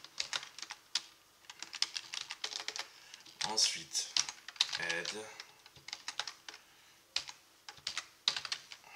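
Keys clatter on a computer keyboard in quick bursts.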